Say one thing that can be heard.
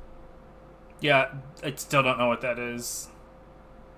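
A man speaks briefly and loudly into a nearby microphone.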